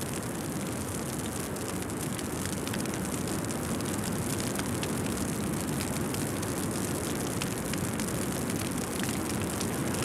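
Rough sea water churns and splashes.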